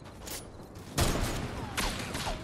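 A pickaxe strikes a wall with a sharp clang.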